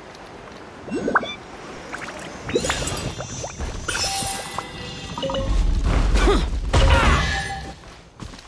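A character lands and strikes with a bow attack.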